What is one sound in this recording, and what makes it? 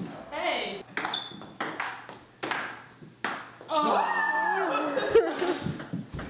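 A ping-pong ball clicks on a table and paddles.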